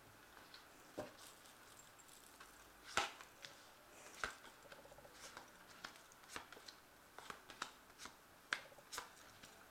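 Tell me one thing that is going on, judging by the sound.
Playing cards tap softly as they are laid down on a cloth.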